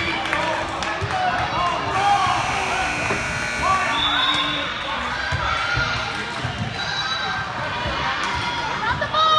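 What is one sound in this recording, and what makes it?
A crowd of spectators chatters and calls out, echoing in a large hall.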